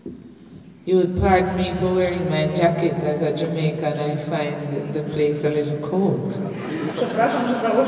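A mixed choir sings together.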